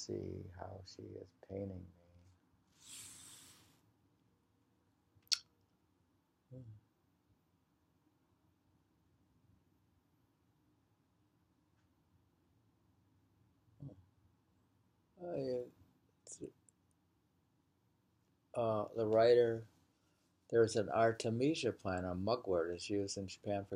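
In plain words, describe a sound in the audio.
An older man speaks calmly and haltingly, close to a microphone, with long pauses.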